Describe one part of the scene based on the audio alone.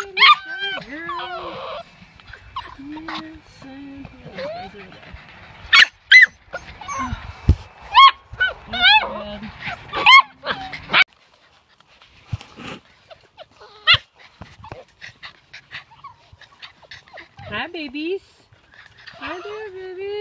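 Puppies whine and yelp in high, bending cries.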